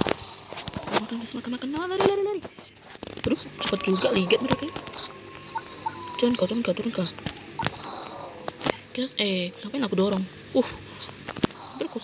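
A young man talks close to a phone microphone with animation.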